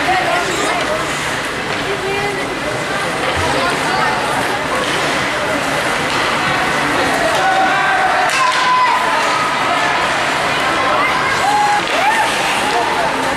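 A crowd of spectators chatters and calls out in a large echoing rink.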